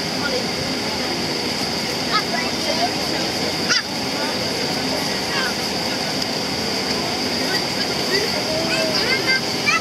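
Jet engines roar steadily as an airliner taxis nearby.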